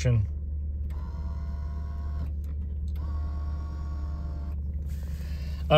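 A power window motor whirs as the window moves.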